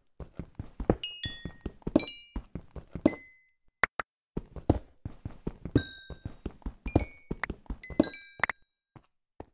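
Small items pop with bright high plinks as they are picked up.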